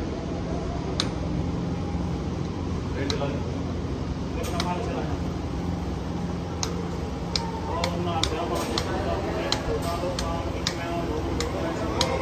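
Treadmill buttons click several times.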